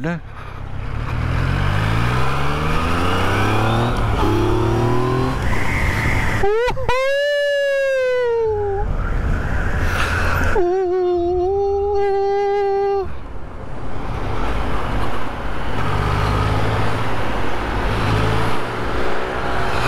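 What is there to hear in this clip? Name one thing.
A motorcycle engine revs up and shifts through the gears.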